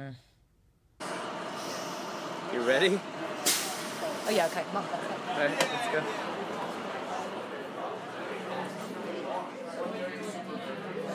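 Many voices murmur in a busy room.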